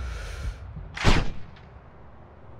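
A sniper rifle fires a single loud shot that echoes briefly.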